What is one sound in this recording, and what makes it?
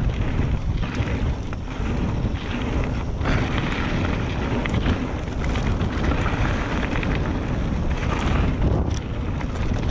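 Bicycle tyres crunch and rumble over loose gravel.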